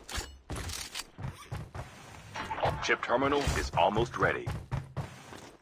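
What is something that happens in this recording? Boots thud on a wooden floor.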